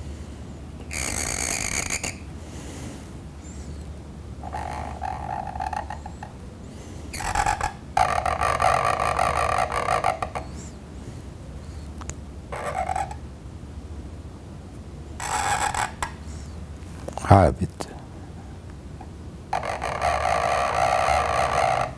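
A reed pen scratches across paper in short strokes.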